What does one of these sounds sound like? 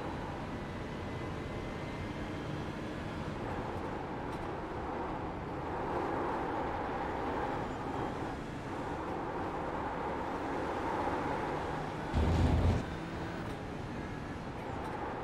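A racing car engine roars and shifts through the gears.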